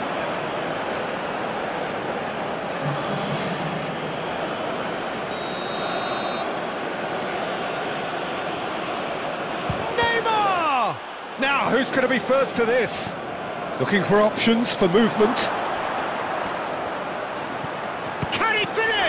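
A large stadium crowd roars steadily in the background.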